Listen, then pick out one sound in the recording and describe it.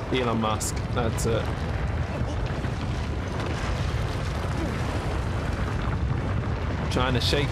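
A deep, heavy rumbling goes on throughout.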